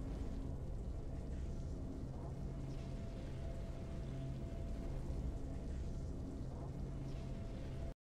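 Triumphant fanfare music plays steadily.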